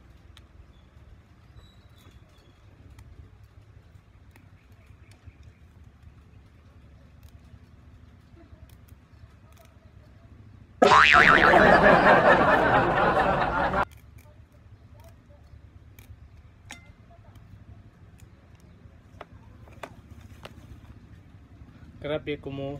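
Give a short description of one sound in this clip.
Small leaves snap softly as they are plucked from stems.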